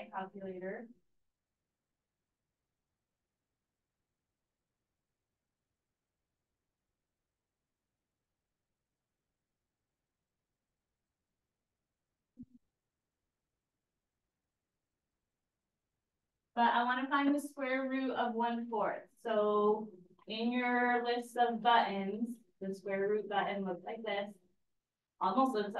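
A woman speaks calmly into a microphone, in bursts with long pauses.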